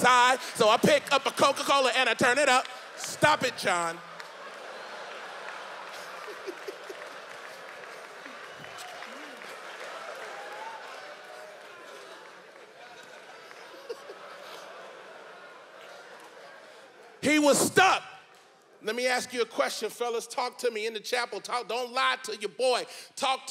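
A man speaks with animation into a microphone in a large echoing hall.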